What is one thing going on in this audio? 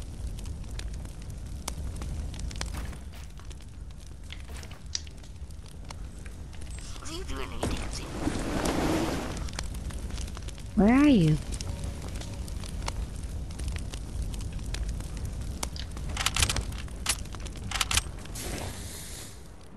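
Wooden walls and ramps thud and clack as they are built.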